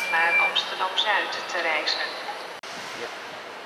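An electric train's motors whine as it pulls away.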